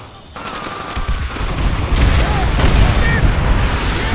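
Explosions boom and rumble deeply.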